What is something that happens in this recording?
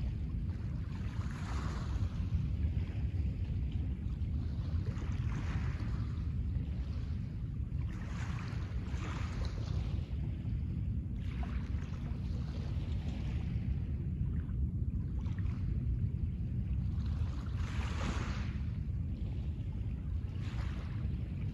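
Small waves wash gently onto a pebble shore in repeated surges.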